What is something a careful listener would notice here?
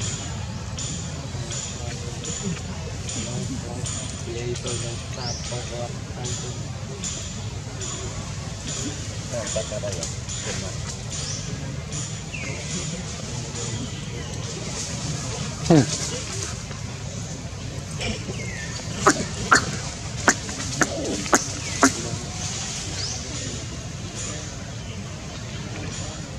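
A baby monkey suckles with soft, wet smacking sounds.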